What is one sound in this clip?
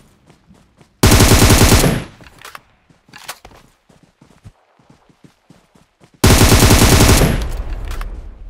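Rapid gunfire rattles in two loud bursts.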